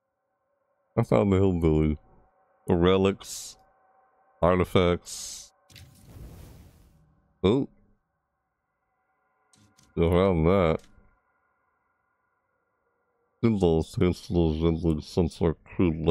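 A young man talks into a microphone in short, animated bursts.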